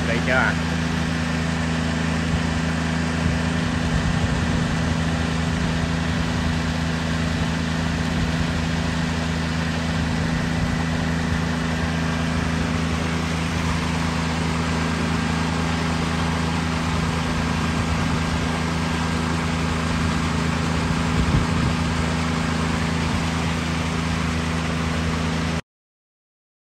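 Electric motors hum steadily.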